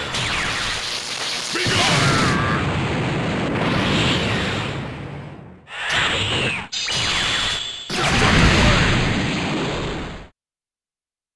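An energy blast crackles and roars.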